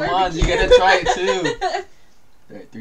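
A young woman laughs and talks with animation close by.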